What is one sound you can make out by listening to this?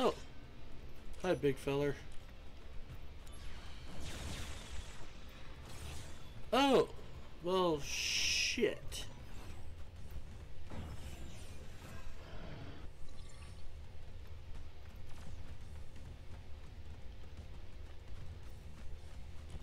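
A sword swishes and clashes in combat.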